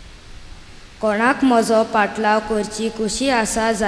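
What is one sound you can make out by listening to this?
A boy speaks clearly into a microphone, heard through a loudspeaker in an echoing hall.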